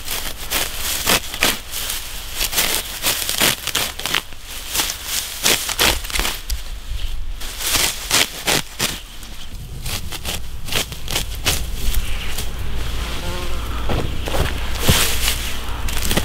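Grass rustles as it is gathered by hand.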